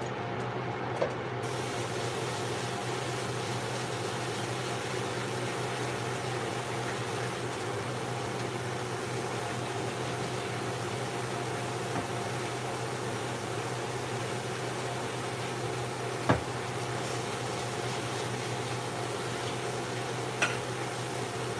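Dishes clink against each other in a sink.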